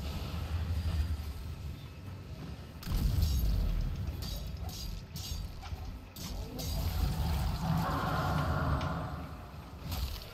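Magic blasts boom and crackle.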